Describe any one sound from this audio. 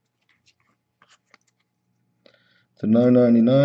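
Trading cards softly flick and rustle in hands.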